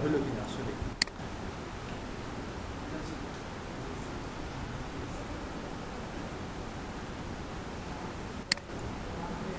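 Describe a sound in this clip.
A computer mouse clicks sharply.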